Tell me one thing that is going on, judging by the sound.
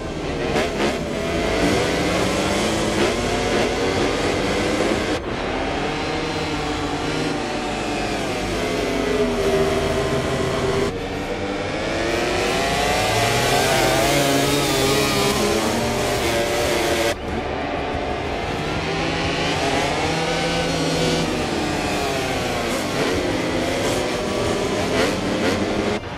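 Racing motorcycle engines roar and whine loudly, rising and falling in pitch as they shift gears.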